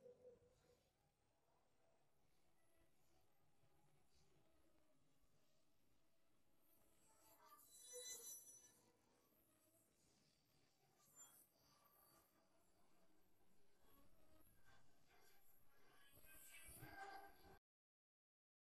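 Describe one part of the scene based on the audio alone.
A young girl sobs.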